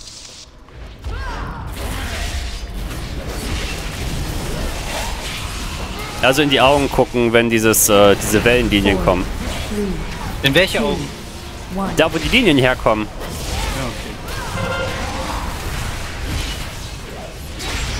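Spell effects crackle and boom during a fantasy battle.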